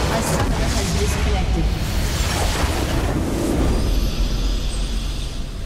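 A large structure explodes with a deep rumble.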